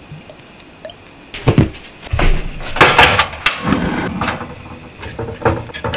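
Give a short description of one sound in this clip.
A gas burner clicks and ignites with a whoosh.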